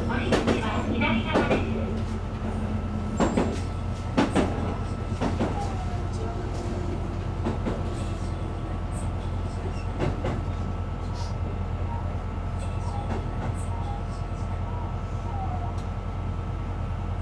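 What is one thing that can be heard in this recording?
A train engine hums steadily from inside the cab.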